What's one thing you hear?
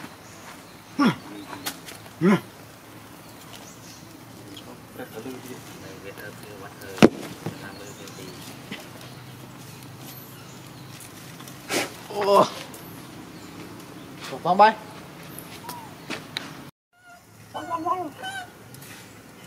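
A young monkey squeals in short, high cries close by.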